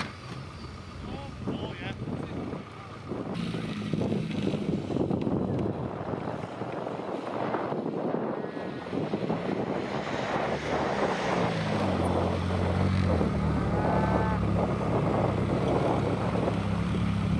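A small car engine revs hard.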